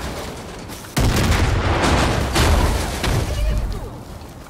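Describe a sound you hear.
An explosion booms and roars loudly.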